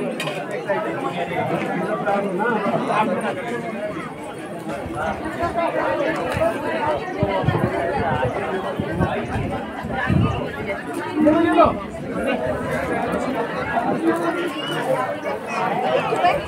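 A middle-aged woman speaks close by.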